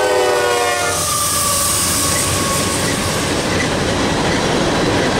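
Freight cars clatter and rumble over the rails.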